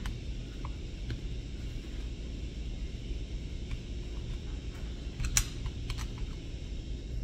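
A metal tool scrapes and taps against a steel bearing.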